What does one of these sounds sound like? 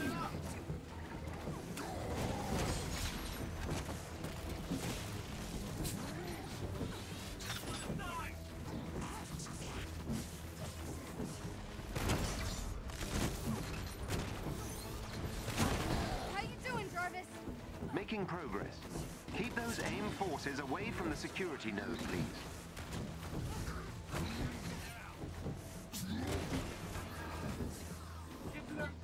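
Loud blasts and impacts of fighting crash again and again.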